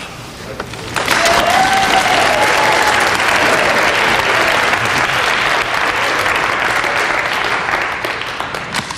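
A crowd cheers and applauds loudly in a hall.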